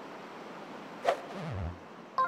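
A golf putter taps a ball once.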